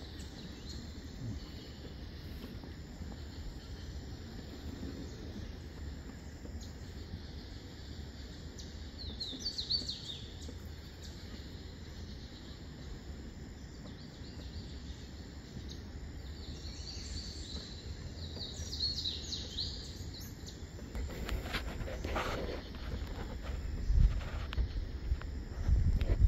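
Water laps softly against a muddy riverbank.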